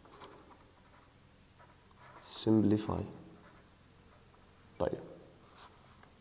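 A felt-tip marker squeaks and scratches softly on paper.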